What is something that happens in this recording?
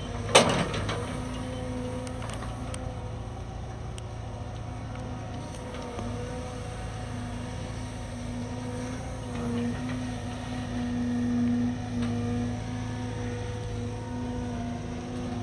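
Wet sand scrapes and thuds as an excavator bucket digs.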